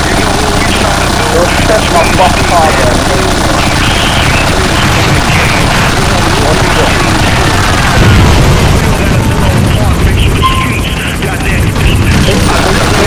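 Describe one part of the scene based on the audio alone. A helicopter's rotor thumps steadily close by.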